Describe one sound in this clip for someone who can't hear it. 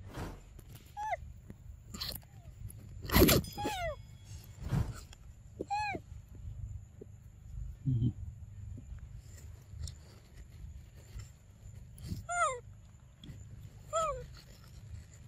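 A young monkey gives short, high squeaking calls now and then.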